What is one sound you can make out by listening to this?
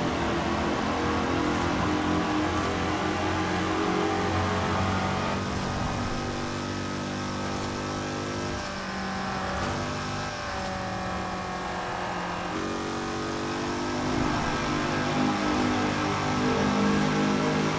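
A racing car engine roars steadily at high speed, echoing loudly inside a tunnel.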